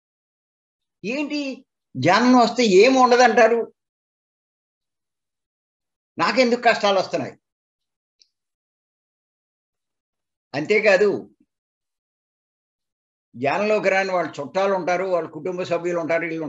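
An elderly man speaks calmly in bursts through an online call, with long pauses.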